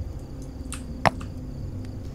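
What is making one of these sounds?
A small object lands with a sharp knock.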